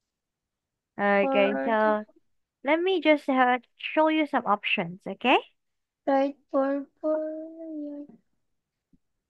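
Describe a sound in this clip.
A young girl speaks slowly and clearly through an online call.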